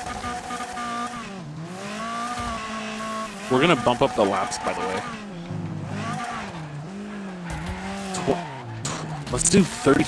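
A racing car engine drones loudly, revving up and down through gear changes.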